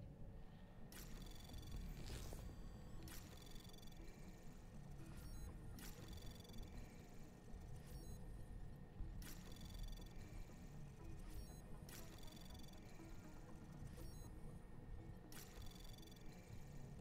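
Electronic chimes beep in short bursts, again and again.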